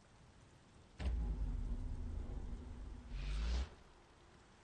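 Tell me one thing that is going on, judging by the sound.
A low, heavy rumble swells and then cuts off.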